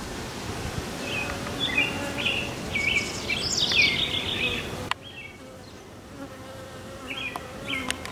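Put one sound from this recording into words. Bees buzz steadily around a hive entrance.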